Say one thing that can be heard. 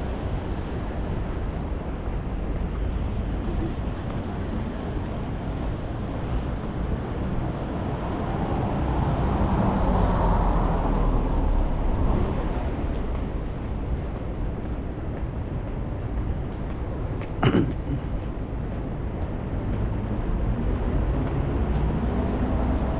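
City traffic hums steadily nearby.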